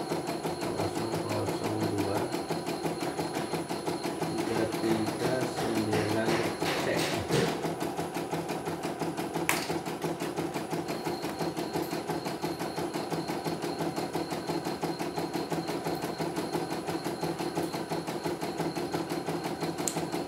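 An embroidery machine stitches with a fast, steady, rhythmic clatter.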